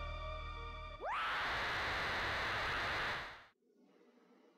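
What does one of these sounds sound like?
A shimmering whoosh sweeps up as a glowing figure vanishes.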